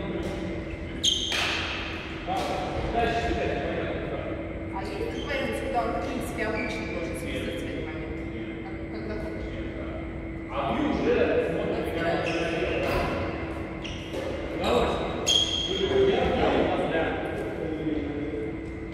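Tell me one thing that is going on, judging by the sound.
A man talks calmly nearby in a large echoing hall.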